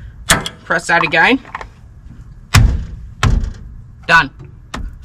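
Metal parts clank sharply.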